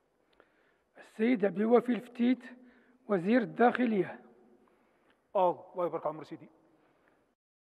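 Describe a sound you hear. A man speaks formally into a microphone in a large echoing hall.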